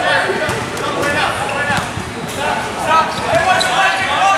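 A basketball bounces on a gym floor.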